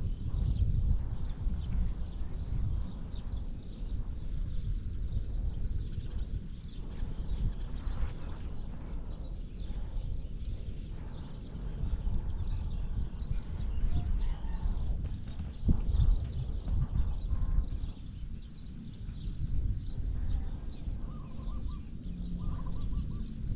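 Wind gusts roughly across the microphone outdoors.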